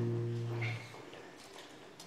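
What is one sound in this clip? A guitar strums a chord that rings out.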